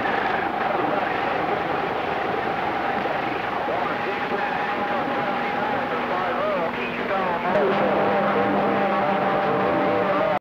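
A radio receiver gives off warbling, whistling tones that bend up and down.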